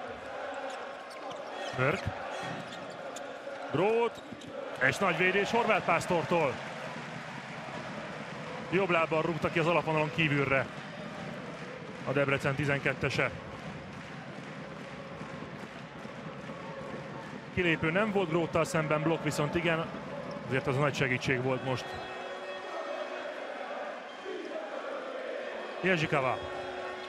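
A large crowd cheers and chants in a big echoing hall.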